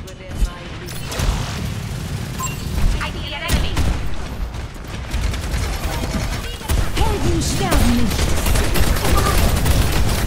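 A weapon fires rapid shots.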